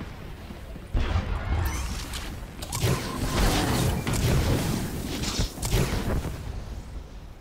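Blasts and explosions burst loudly in a game battle.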